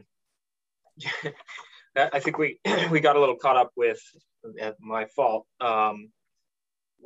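A second man speaks calmly over an online call.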